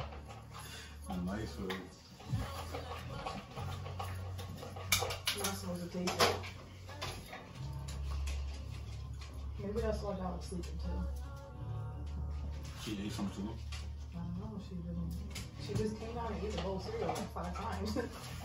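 Young people talk casually nearby.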